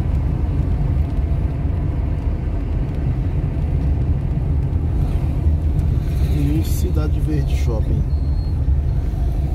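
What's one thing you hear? Tyres hum on asphalt.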